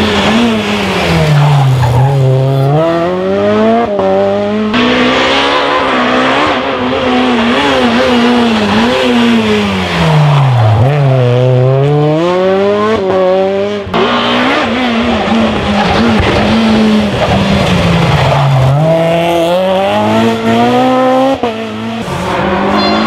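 A rally car engine roars and revs hard, rising and falling in pitch.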